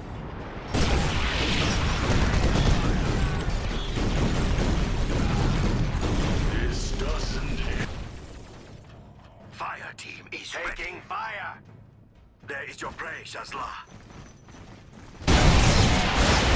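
Gunfire and explosions rumble loudly in a battle.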